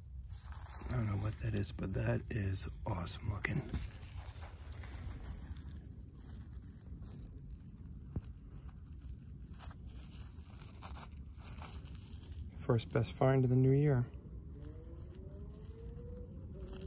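Gloved fingers rub and turn a small piece of glass.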